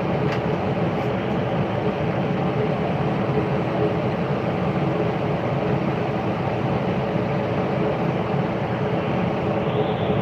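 A ride's machinery rumbles and hums steadily close by.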